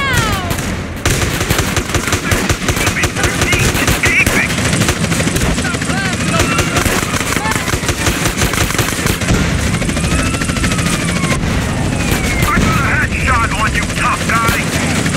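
Gunshots fire rapidly in quick bursts.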